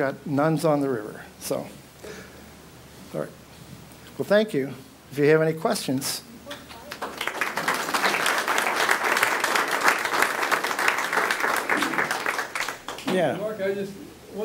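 An elderly man speaks calmly to an audience through a microphone.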